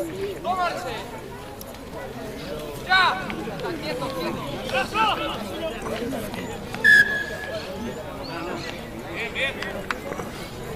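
Young men shout calls outdoors at a distance.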